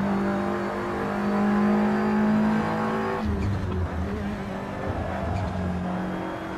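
A race car engine roars loudly at high revs.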